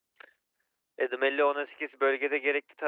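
A man speaks quickly through a microphone.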